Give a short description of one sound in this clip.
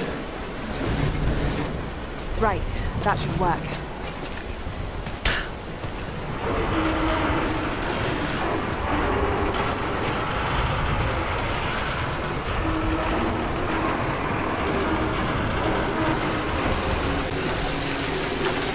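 Water pours down in a steady rush.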